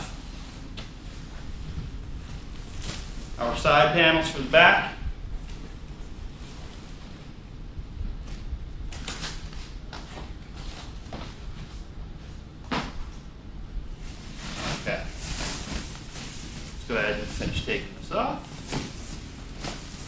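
Plastic wrapping rustles and crinkles as it is handled.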